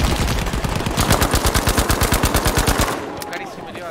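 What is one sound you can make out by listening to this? A machine gun fires a long rapid burst close by.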